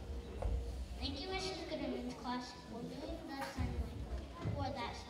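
A young girl speaks clearly into a microphone over loudspeakers in a large hall.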